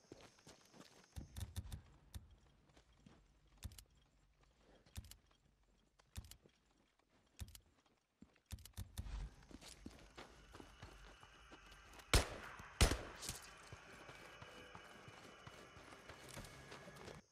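Footsteps run quickly over a road and dirt.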